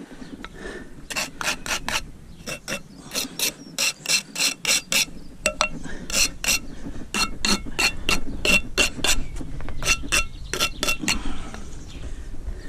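A trowel scrapes and taps against mortar and brick.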